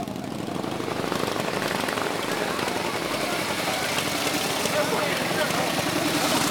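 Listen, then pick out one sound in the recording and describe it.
A motorcycle engine revs as the bike pulls away.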